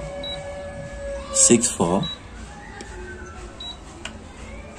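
A keypad beeps briefly as buttons are pressed.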